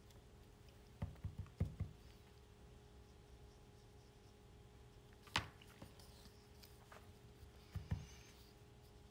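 Paper cards knock and slide on a table.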